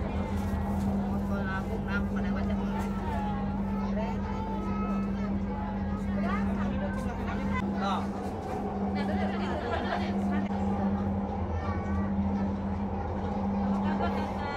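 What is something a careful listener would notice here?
A train hums steadily as it rolls along.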